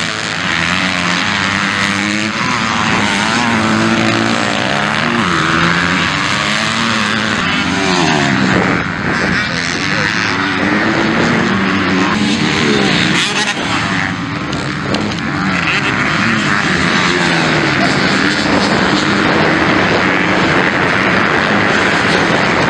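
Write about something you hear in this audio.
Motorcycle engines rev loudly, rising and falling in pitch.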